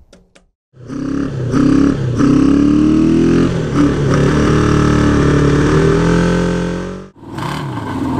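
A motorcycle engine runs roughly and sputters close by.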